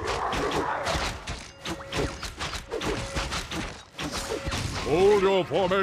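Swords and axes clash in a fast skirmish.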